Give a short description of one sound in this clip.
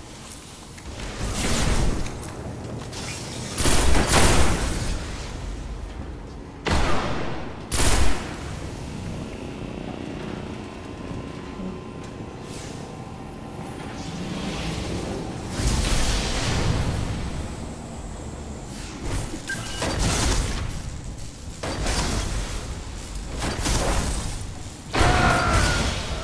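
Guns fire in loud, sharp bursts.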